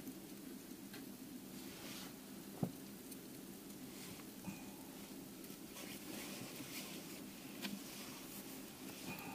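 A stove burner hisses steadily.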